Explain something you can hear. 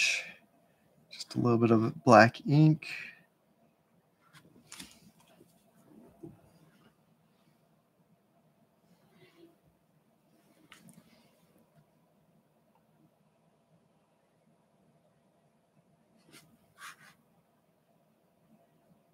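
A brush strokes softly across paper.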